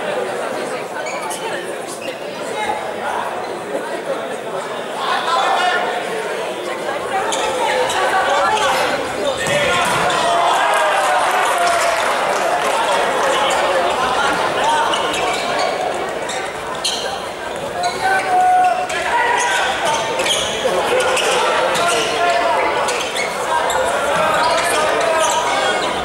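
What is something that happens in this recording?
A ball thuds as players kick it.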